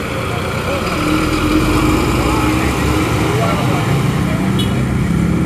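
Motorcycle engines hum as they pass close by.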